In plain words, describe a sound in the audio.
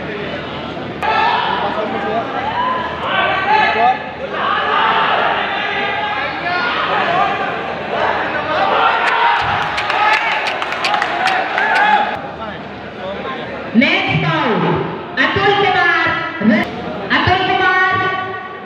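A crowd of young men shouts and cheers loudly.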